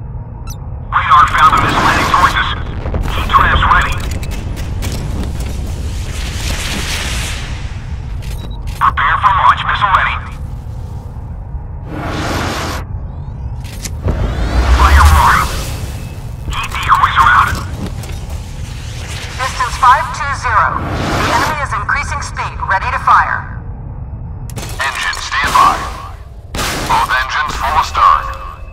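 Heavy guns fire in loud bursts.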